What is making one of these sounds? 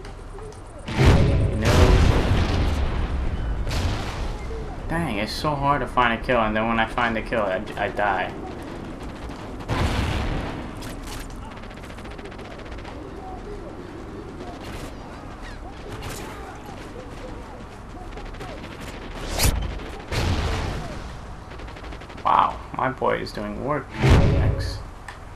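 Gunshots bang loudly in short bursts.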